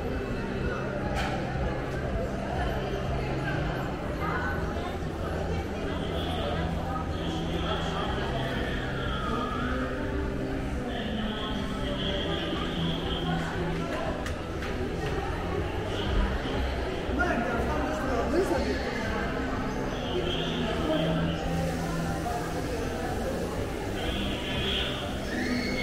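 Footsteps tap on a hard floor close by.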